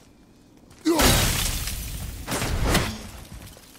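An axe strikes with a loud icy crash.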